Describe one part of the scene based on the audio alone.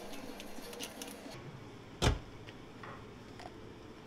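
Water pours over ice in a cup.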